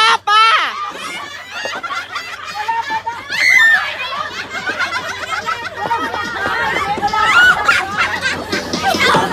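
A group of women chat and laugh loudly nearby, outdoors.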